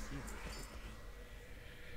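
A magical spell chimes and shimmers briefly.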